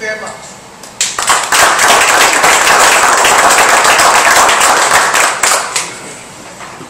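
A small audience claps.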